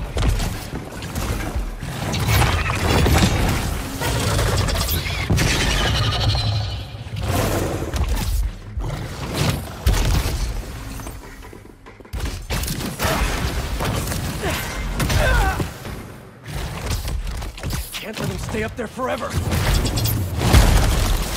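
Heavy impacts and crashes thud during a fight.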